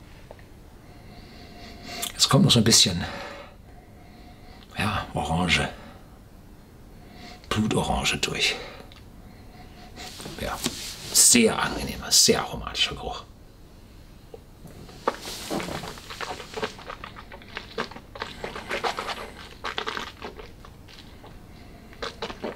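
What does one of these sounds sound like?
An older man sniffs deeply.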